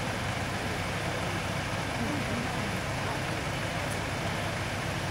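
A truck engine idles steadily.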